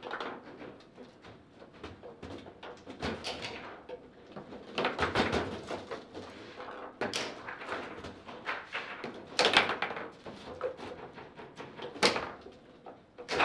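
A foosball ball knocks and clacks against the rods and table walls.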